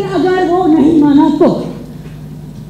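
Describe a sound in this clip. A woman speaks with emotion on a stage, heard through a microphone.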